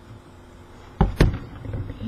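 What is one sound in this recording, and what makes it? A bottle knocks against a table close by.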